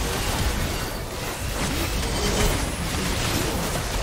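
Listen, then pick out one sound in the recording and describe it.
A building crumbles and collapses with a heavy crash.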